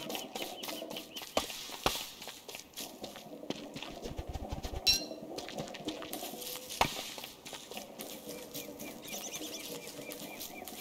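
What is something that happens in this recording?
Footsteps patter softly on grass.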